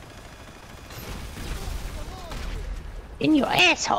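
An explosion booms with a deep rumble.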